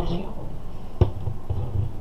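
A ceramic cup is set down on a saucer with a light clink.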